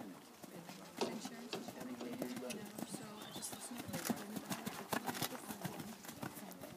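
A horse's hooves thud on soft sand.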